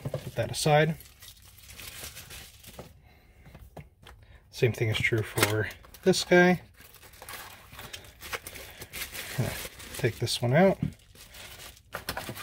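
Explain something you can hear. Plastic bubble wrap crinkles in hands.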